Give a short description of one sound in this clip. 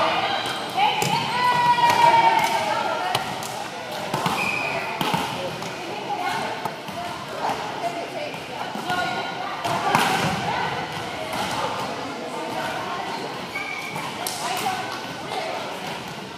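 Young men and women chatter and call out in a large echoing gym.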